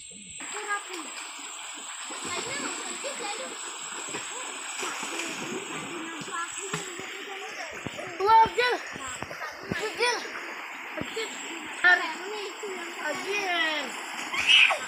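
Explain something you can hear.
Children splash and kick in shallow water.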